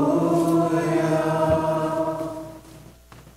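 A man sings a chant through a microphone in an echoing hall.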